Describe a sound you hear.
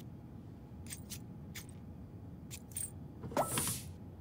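A metal side panel slides off a computer case.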